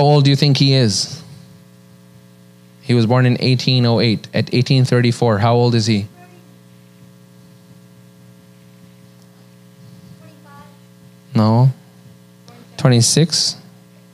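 A man speaks calmly into a microphone, in short bursts with pauses.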